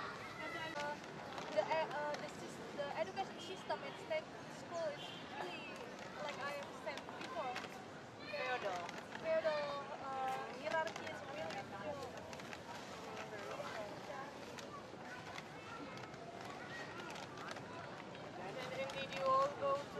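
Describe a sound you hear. Young men and women chat and laugh together nearby, outdoors.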